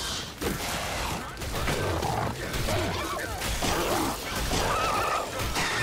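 Blows land with heavy, wet thuds.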